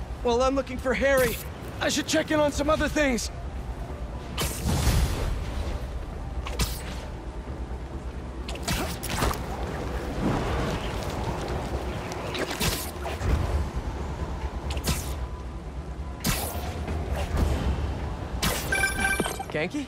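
A web line snaps taut with a sharp thwip.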